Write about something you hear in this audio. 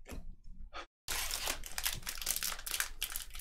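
A foil wrapper crinkles as a pack is torn open.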